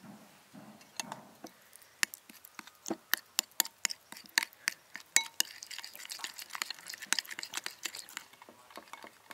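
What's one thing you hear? A spoon mixes a thick sauce, squelching wetly.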